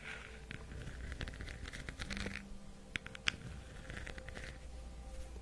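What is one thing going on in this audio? Fingernails tap and scratch on a hard smooth ball close to a microphone.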